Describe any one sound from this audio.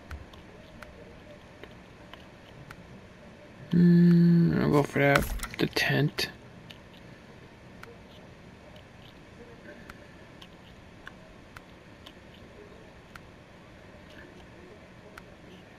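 Soft menu clicks tick at intervals.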